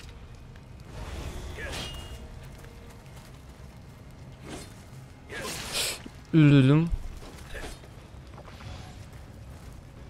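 Swords swish and clash in a fight.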